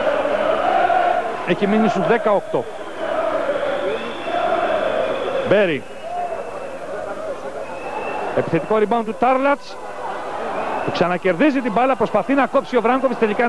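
A large crowd roars and cheers in a big echoing hall.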